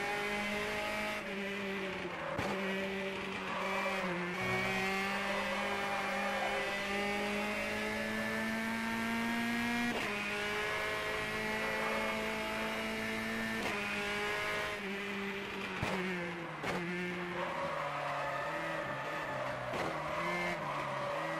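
A racing car engine roars at high revs, rising in pitch and dropping sharply with each gear change.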